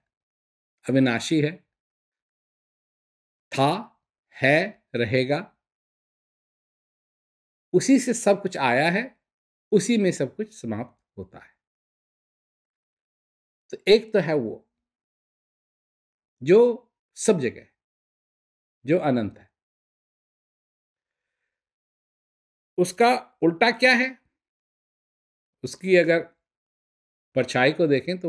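An elderly man speaks calmly and expressively, close to a microphone, with long pauses.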